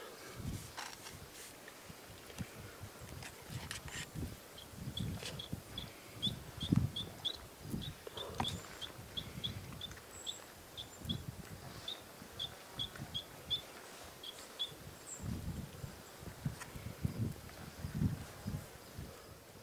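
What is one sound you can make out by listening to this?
Hands tap and scrape softly on a board.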